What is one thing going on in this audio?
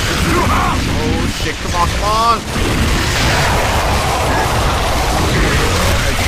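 A heavy machine gun fires rapidly.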